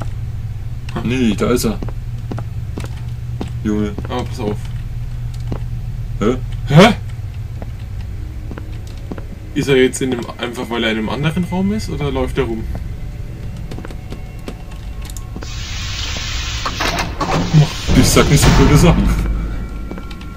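Two young men talk close to a microphone.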